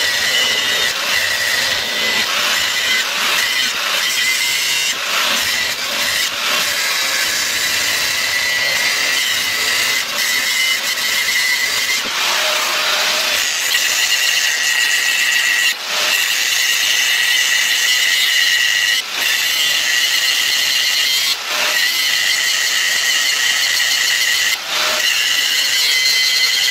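An angle grinder whines at high speed and grinds metal with a harsh, shrill hiss.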